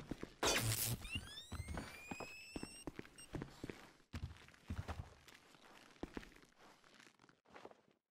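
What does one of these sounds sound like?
Footsteps fall softly on a carpeted floor.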